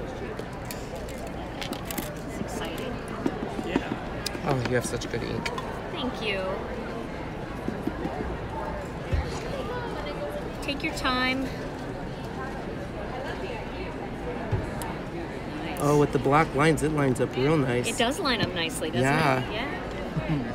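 People chatter in the background.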